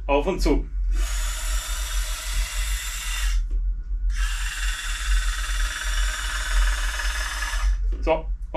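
A toy crane's small electric motor whirs steadily.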